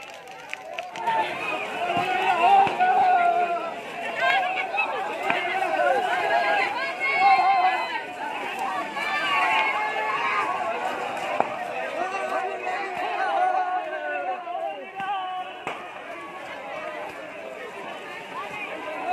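A crowd of young men shouts and cheers loudly outdoors.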